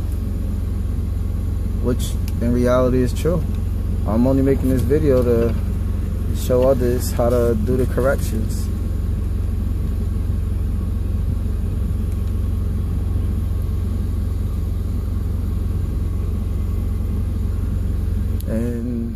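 A vehicle engine idles with a steady low hum.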